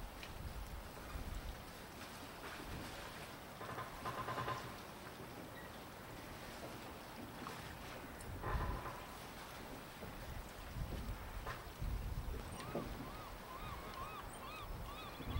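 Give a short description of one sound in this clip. Wind gusts blow across the microphone outdoors.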